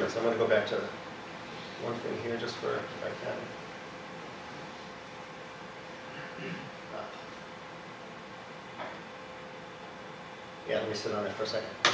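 An elderly man speaks calmly in a room with a slight echo, with long pauses.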